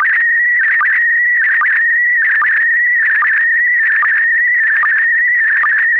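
An electronic Morse keyer sounds a steady high tone.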